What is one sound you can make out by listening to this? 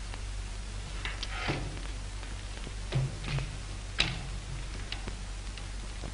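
Metal parts of a large lamp clank and click as they are handled.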